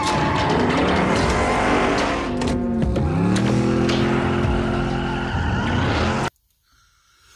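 A car engine roars and revs loudly.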